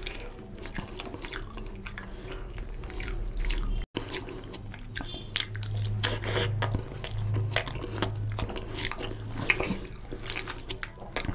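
A man chews food noisily, close to a microphone.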